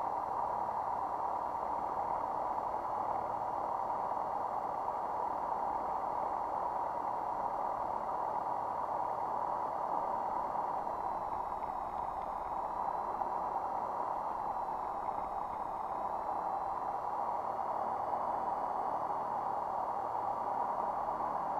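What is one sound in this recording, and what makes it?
A small plane's engine drones steadily inside the cockpit.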